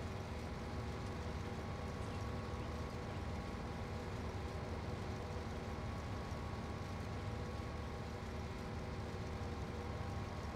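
A combine harvester engine drones steadily.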